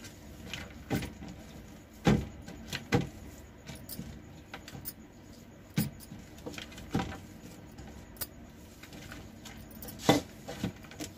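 Glass bangles clink against each other.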